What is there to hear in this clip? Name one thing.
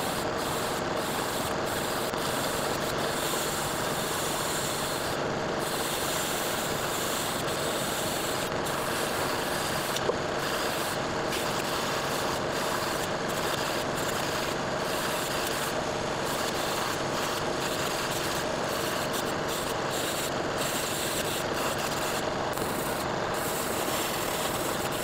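A drill press motor hums steadily.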